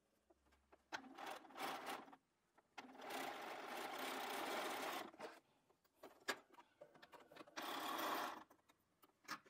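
A sewing machine whirs as it stitches in short bursts.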